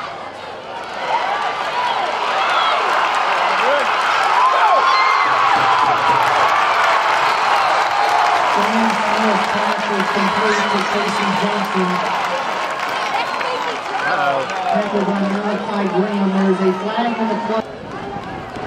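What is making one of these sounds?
A large crowd cheers loudly outdoors.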